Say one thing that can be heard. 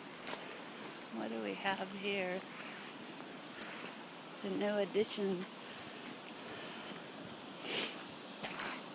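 Shallow river water flows and trickles over stones.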